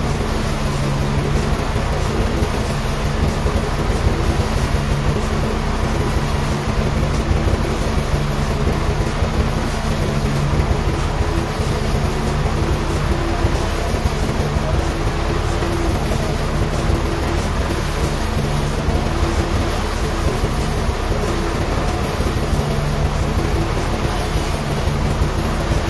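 A sawmill machine motor hums and rumbles throughout.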